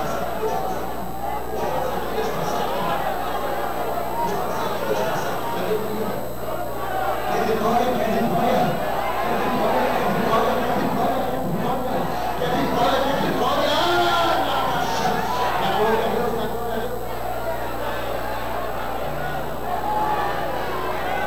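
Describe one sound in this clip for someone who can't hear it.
A man speaks with fervour into a microphone through loudspeakers.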